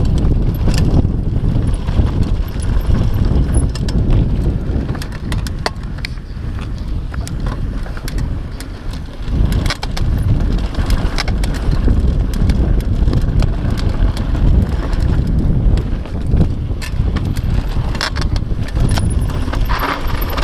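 Wind rushes loudly past a rider on a mountain bike.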